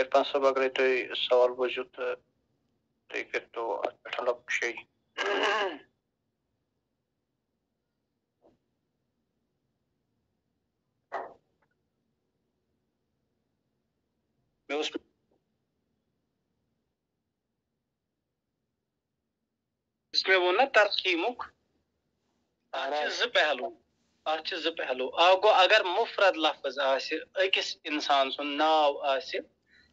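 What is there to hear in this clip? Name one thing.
A man speaks calmly into a microphone, pausing at length between phrases.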